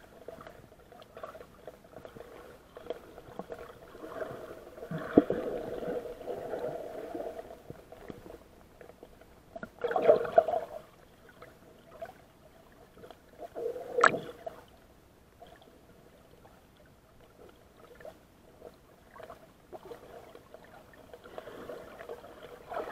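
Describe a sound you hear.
Underwater, water rumbles and gurgles dully around the microphone.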